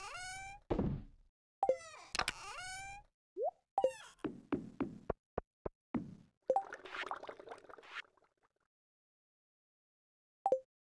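Short game menu clicks and chimes sound in quick succession.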